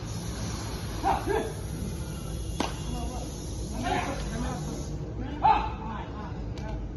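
Young men shout excitedly in short bursts outdoors.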